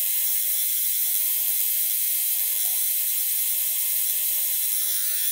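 A tattoo machine buzzes steadily close by.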